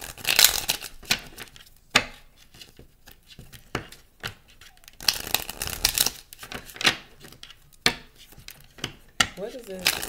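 Playing cards riffle and shuffle close by.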